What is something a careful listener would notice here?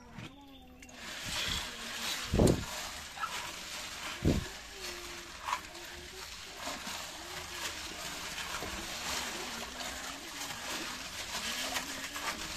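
A hand swishes water and gravel in a plastic tub.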